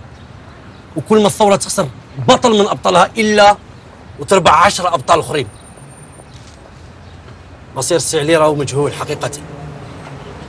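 A middle-aged man speaks sharply, close by.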